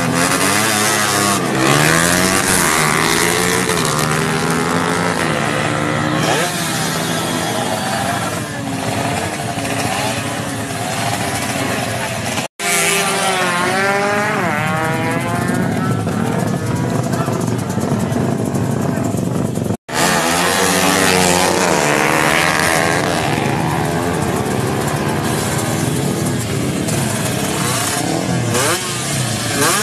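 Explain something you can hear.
Motorcycle engines rev loudly and roar close by.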